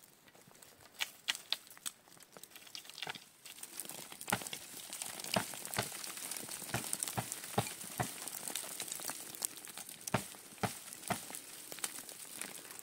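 Small fruits drop and patter onto a cloth on the ground.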